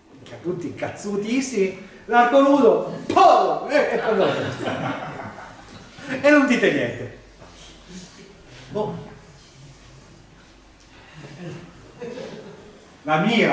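An older man speaks with animation in a room with some echo.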